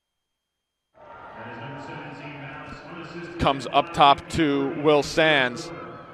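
A crowd cheers outdoors.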